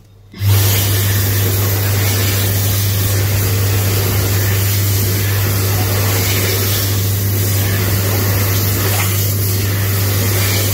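A Dyson Airblade hand dryer starts up and blasts air with a loud, steady high-pitched whine and hum.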